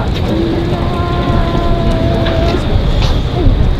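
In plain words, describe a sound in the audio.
A marching band's brass plays a few sustained notes.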